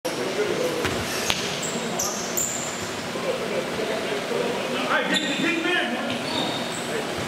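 Young men call out to each other, echoing in a large hall.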